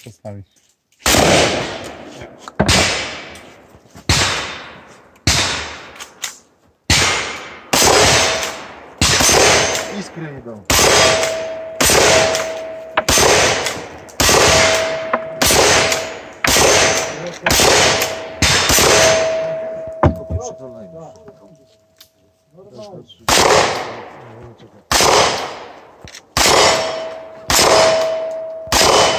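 Loud gunshots ring out one after another and echo outdoors.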